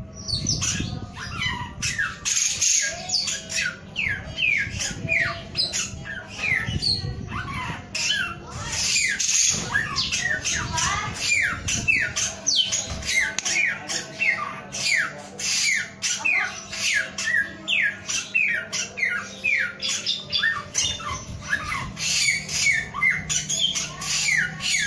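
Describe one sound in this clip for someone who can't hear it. A small caged bird sings rapid, repeated chirping notes throughout.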